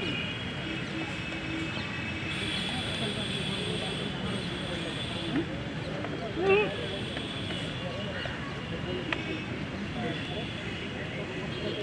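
Young men talk together in a huddle outdoors.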